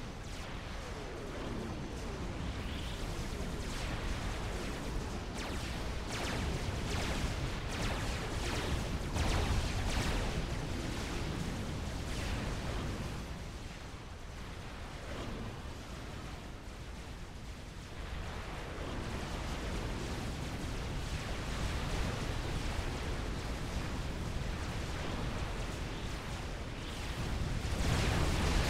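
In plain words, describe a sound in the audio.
Explosions and gunfire rumble and crack throughout.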